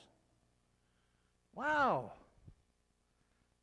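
An elderly man speaks loudly through a microphone in an echoing hall.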